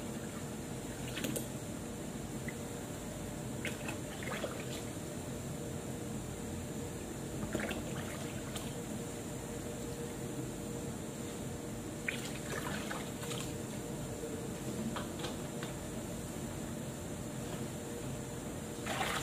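A plastic bottle cap clicks and taps.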